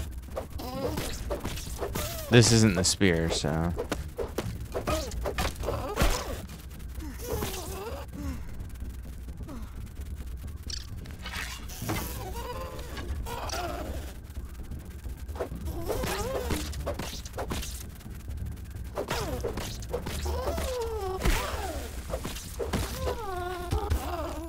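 Blows thud against a large insect.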